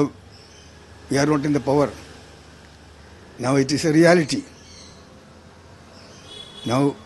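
An elderly man speaks slowly and haltingly into a microphone close by.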